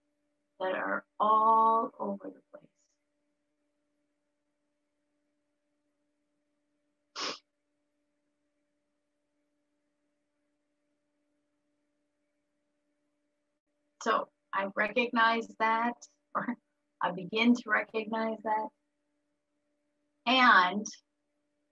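A middle-aged woman speaks calmly over an online call, in short bursts with pauses.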